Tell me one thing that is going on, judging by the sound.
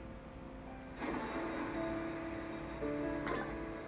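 Gentle video game music plays from a television speaker.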